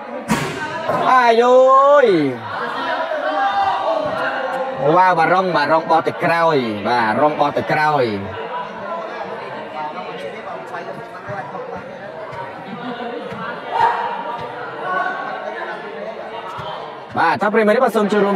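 Young men shout loudly in an echoing hall.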